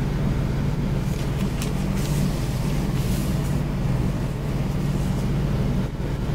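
Paper rustles and crinkles under a hand.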